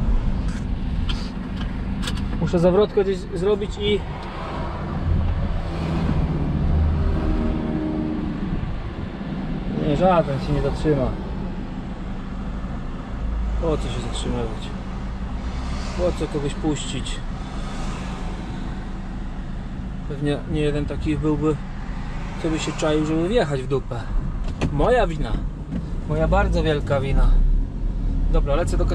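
A vehicle engine hums steadily from inside the cab.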